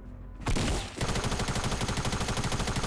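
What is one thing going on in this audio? Rapid gunshots fire in quick succession.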